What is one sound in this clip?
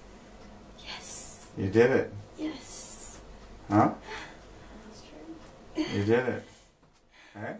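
A woman gives calm instructions nearby.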